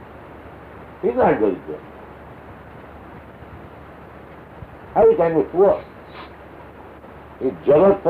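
An elderly man speaks calmly in short phrases, heard through an old recording.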